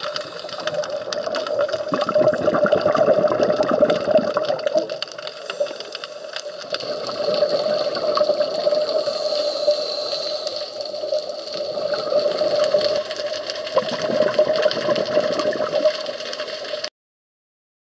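A scuba diver breathes loudly through a regulator underwater.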